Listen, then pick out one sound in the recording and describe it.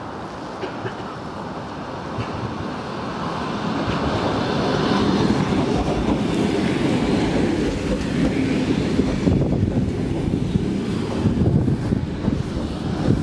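A train approaches and rumbles past close by, growing louder.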